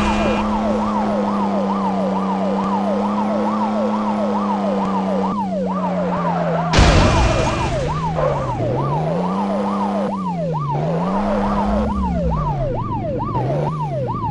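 A car engine drones steadily, then rises and falls in pitch.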